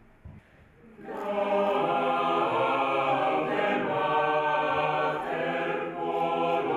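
A choir of young women and men sings in an echoing hall.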